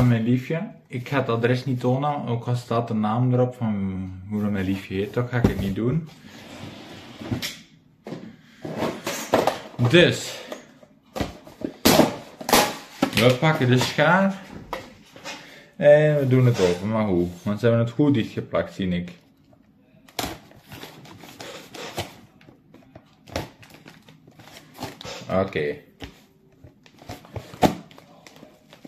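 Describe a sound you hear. Cardboard rustles and scrapes as a box is handled and opened.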